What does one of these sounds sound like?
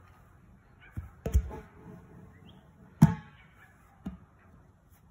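A ball thumps against hands and lands on grass with dull thuds.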